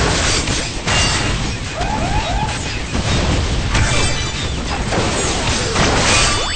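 Explosions boom and crackle over and over.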